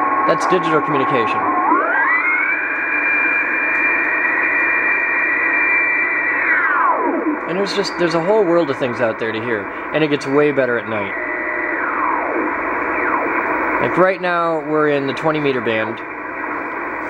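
Garbled, warbling voices come from a radio receiver's loudspeaker.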